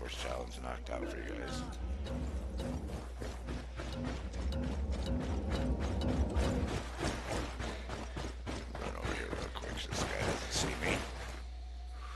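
Footsteps crunch through dry grass and gravel.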